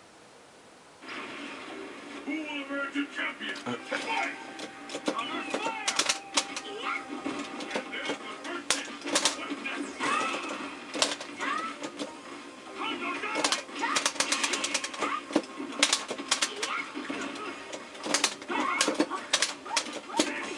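Lively game music plays.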